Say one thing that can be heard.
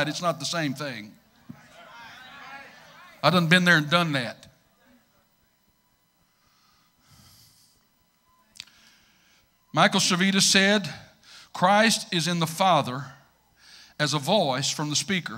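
A middle-aged man preaches with feeling into a microphone, with pauses between phrases.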